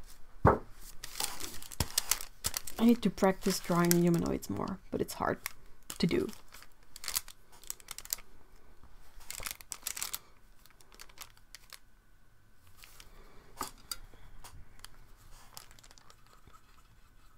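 Hands shift paper and objects on a table with soft rustles and taps.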